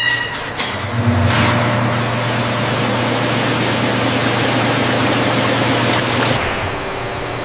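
Liquid gushes and splashes into a tank.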